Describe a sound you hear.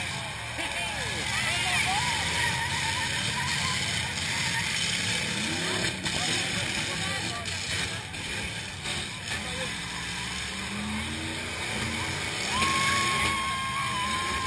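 Truck engines roar and rev loudly.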